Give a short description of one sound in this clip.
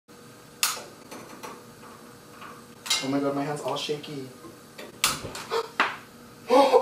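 A gas lighter clicks sharply a few times.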